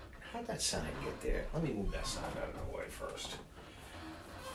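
A middle-aged man speaks close to the microphone with animation.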